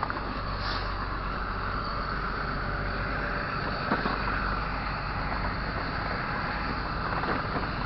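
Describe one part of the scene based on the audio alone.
A city bus drives past.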